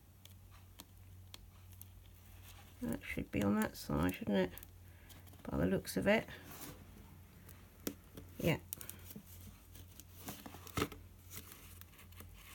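Thread rasps softly as it is pulled through folded paper.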